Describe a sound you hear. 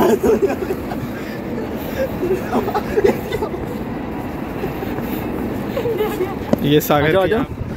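Footsteps scuff up stone stairs outdoors.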